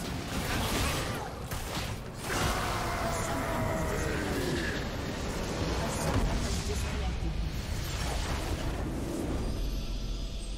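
Magic blasts crackle and boom in a busy fight.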